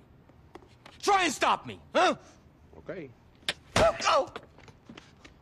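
A second man shouts angrily.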